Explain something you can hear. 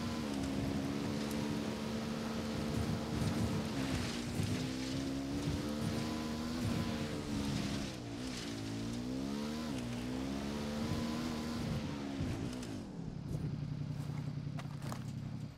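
A motorcycle engine roars and revs up and down.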